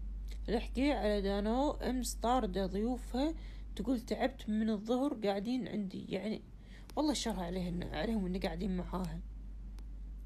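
A woman speaks close to a phone microphone with animation.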